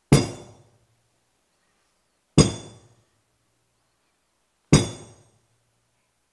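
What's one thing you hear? A wooden staff strikes the floor three times with a sharp knock.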